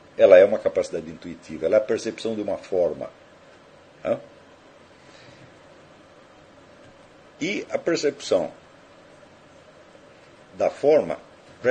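An elderly man speaks calmly into a nearby microphone, in short bursts with pauses.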